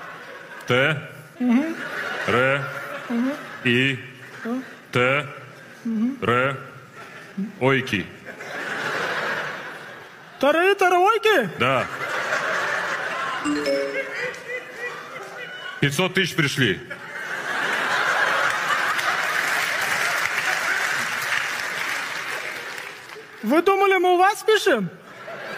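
A middle-aged man talks on the phone close by, with animation and exasperation.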